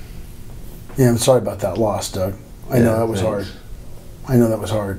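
A middle-aged man speaks calmly and thoughtfully close to a microphone.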